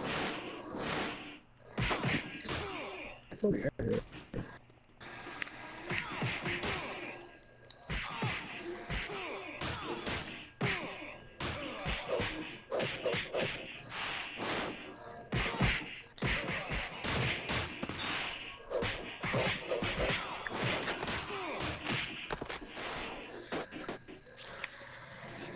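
Punches and kicks land with sharp thuds in a side-scrolling fighting game.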